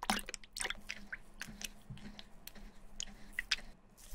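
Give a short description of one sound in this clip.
A wooden brush stirs and sloshes through soapy water.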